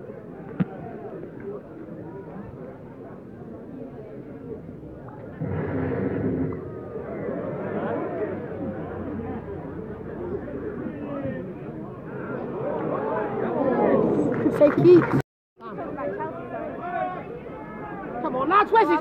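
A crowd of spectators murmurs and shouts outdoors.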